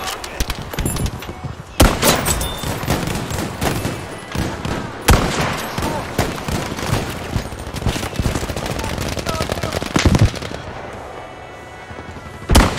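Gunfire and explosions rumble in the distance.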